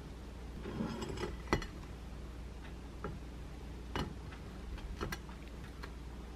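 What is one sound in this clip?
A plate clinks as it is set down on a wooden board.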